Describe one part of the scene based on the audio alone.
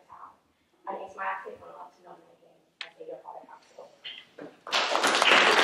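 A woman speaks calmly through a microphone.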